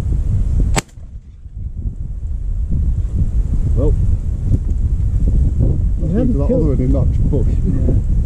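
Wind buffets and rumbles steadily outdoors.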